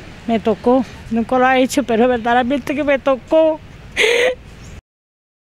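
A middle-aged woman speaks tearfully into a close microphone.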